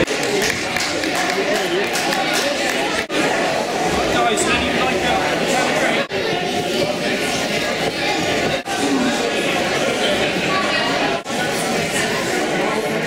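A large crowd of men and women chatters in a big echoing hall.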